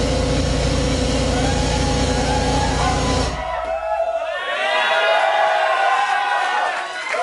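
Loud electronic dance music booms through large loudspeakers, and its deep bass suddenly drops away partway through.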